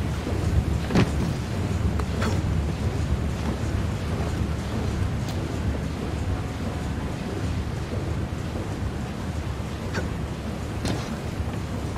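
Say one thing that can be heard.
A man lands with a heavy thump after a jump.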